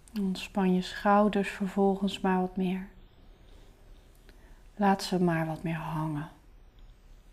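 A young woman speaks calmly and close up, with pauses.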